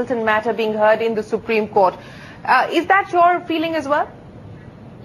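A young woman speaks clearly and briskly through a microphone.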